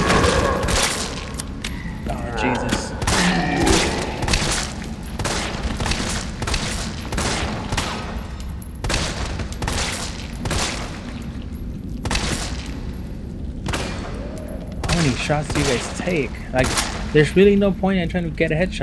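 Pistol shots ring out again and again, echoing off hard walls.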